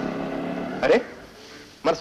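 A young man sings.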